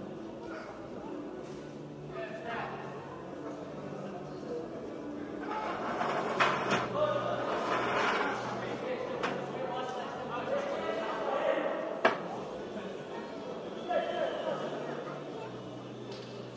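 Men shout instructions nearby.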